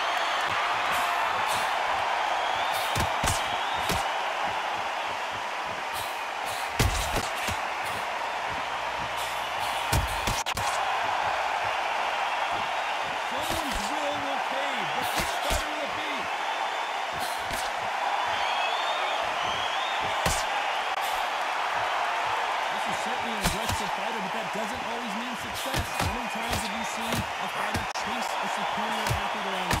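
Punches thud against a boxer's body and gloves.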